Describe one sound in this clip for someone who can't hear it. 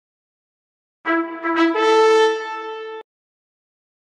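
A bright video game jingle chimes as a new wave begins.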